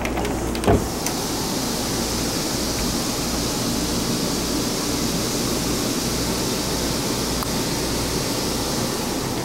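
A ceiling vent fan whirs with a steady hiss.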